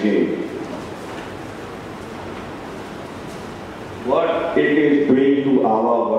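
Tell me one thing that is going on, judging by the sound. A man speaks through a microphone and loudspeakers in an echoing hall.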